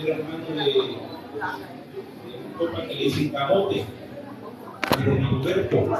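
An elderly woman talks through a face mask.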